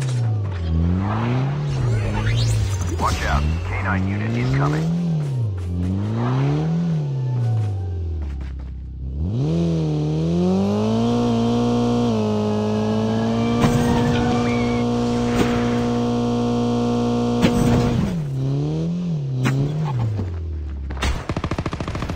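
A car engine revs up and down, then holds a steady roar.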